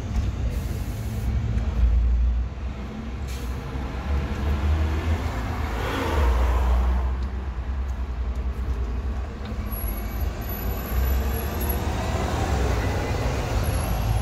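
A city bus engine rumbles as the bus pulls past close by.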